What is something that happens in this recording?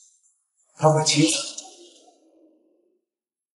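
A young man speaks softly and smugly, close by.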